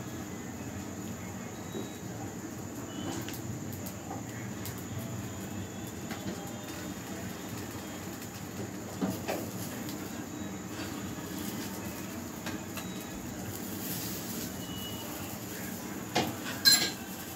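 An omelette sizzles quietly in a frying pan.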